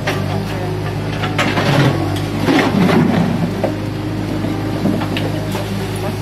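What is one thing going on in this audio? Debris scrapes and clatters in an excavator bucket.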